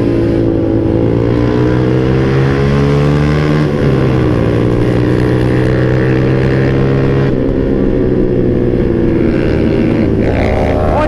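Wind rushes past the rider.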